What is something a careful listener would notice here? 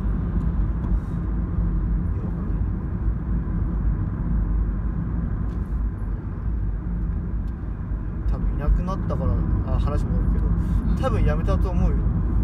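A car engine hums low and steady as tyres roll along the road.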